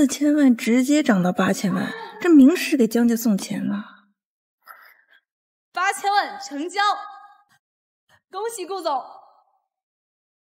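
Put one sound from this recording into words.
A young woman speaks with a mocking tone, up close.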